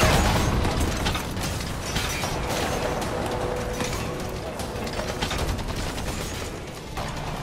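Footsteps run quickly across a metal surface.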